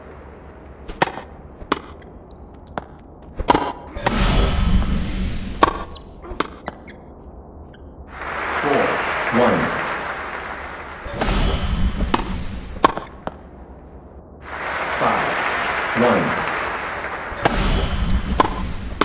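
A tennis ball is struck sharply with a racket, again and again.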